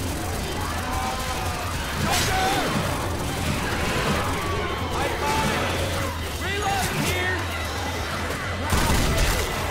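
Monsters snarl and shriek.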